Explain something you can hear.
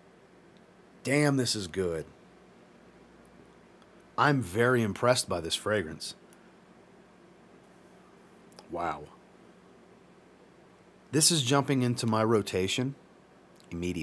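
A man talks with animation close to a microphone, in short bursts with pauses.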